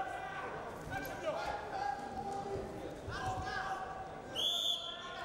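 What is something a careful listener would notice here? Bodies thud against a wrestling mat.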